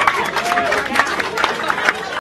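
Hands slap together in a handshake.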